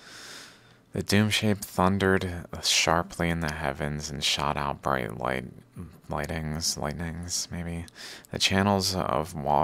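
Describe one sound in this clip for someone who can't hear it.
A man reads out calmly, close to a microphone.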